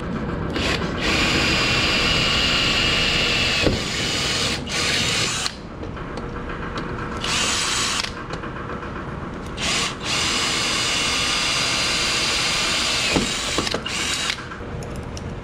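A cordless drill whirs in several bursts.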